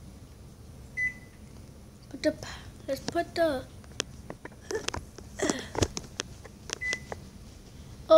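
A microwave keypad gives a short, high electronic beep.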